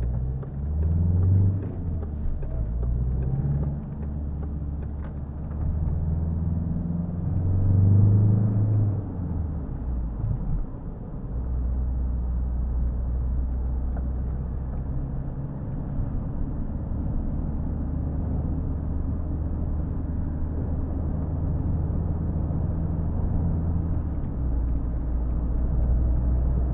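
Tyres rumble on the road.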